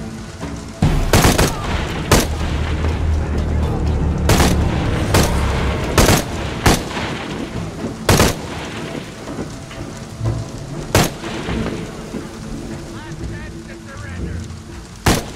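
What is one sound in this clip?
Rifle shots ring out one at a time, with short echoes.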